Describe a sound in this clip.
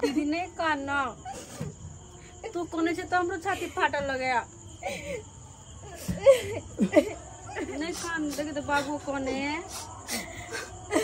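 A woman wails and sobs loudly nearby.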